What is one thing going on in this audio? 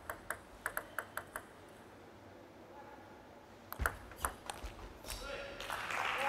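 A table tennis ball clicks rapidly back and forth off paddles and the table.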